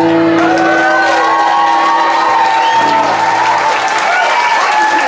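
A band plays music with a plucked upright bass and guitar, then stops.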